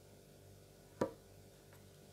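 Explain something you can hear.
A knife blade taps down onto a soft surface.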